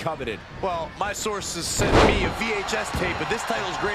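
A wrestler slams down onto the ring mat with a heavy thud.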